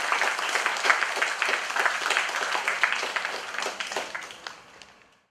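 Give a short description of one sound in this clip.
People clap their hands in applause, which slowly fades away.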